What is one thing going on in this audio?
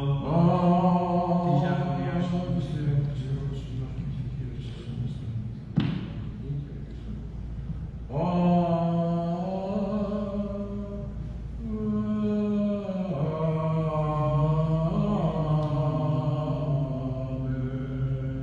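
A man chants in a slow, sustained voice in a large echoing hall.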